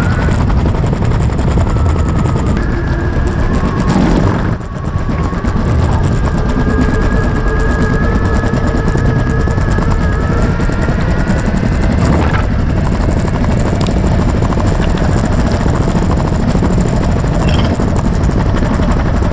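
Hard wheels of an electric skateboard roll and rumble over paving slabs.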